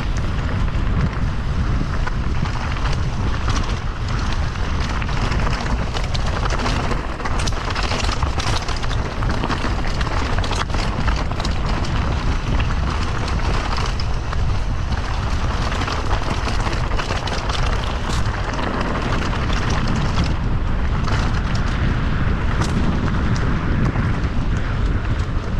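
A bicycle frame rattles over bumps.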